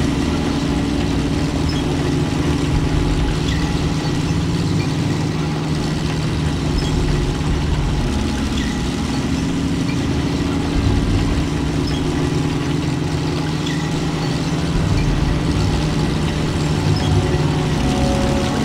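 Tank tracks clank and squeak over the ground.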